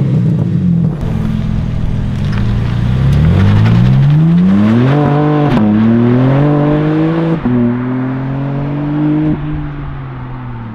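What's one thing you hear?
A sports car accelerates away with a rising roar that fades into the distance.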